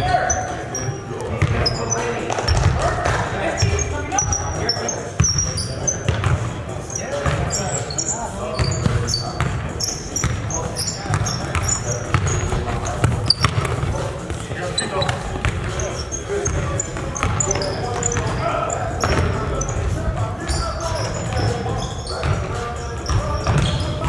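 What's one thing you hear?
Men call out to each other across a large echoing gym.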